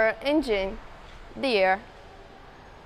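A young woman speaks animatedly into a nearby microphone.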